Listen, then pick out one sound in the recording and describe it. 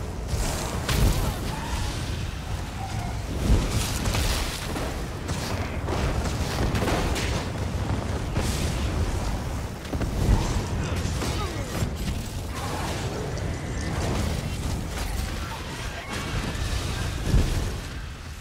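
Heavy impacts boom during a fight.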